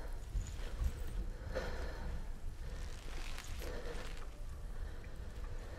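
A fire crackles and rumbles low.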